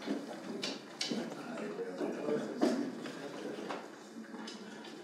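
People murmur and shuffle in a room.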